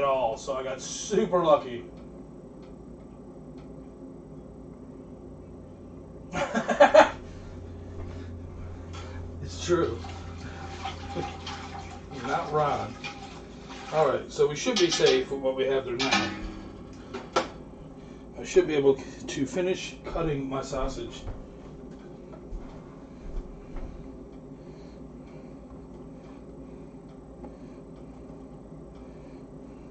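Liquid simmers and bubbles gently in a pot.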